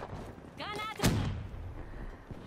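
A single gunshot bangs sharply.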